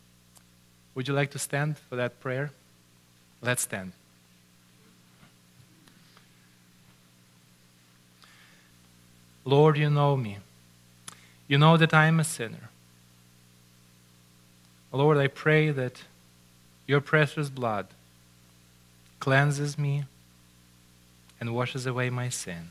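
A middle-aged man speaks slowly and solemnly through a microphone, with pauses.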